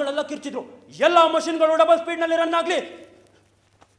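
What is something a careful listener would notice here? A young man sings a long, drawn-out note.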